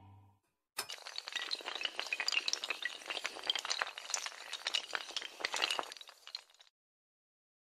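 Dominoes topple and clatter against each other in quick succession.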